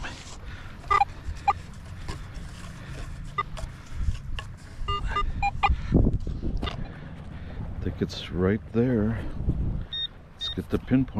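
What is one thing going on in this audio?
A metal detector beeps in short, sharp chirps.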